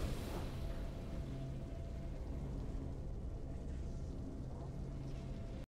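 Triumphant game music plays steadily.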